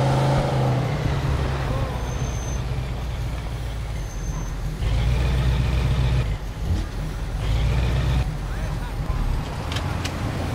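A car engine rumbles low as the car drives along.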